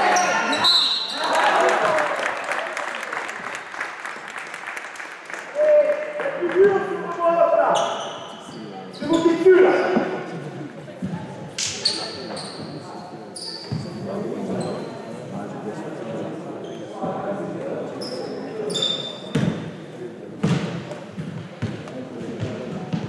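Spectators chatter and shout nearby.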